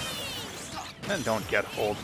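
Sharp video game hit effects crack and whoosh.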